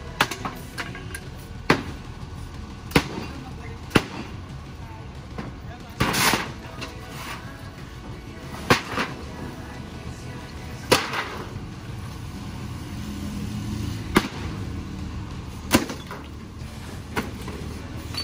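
Heavy blows bang against a wooden cart, cracking and splintering the wood.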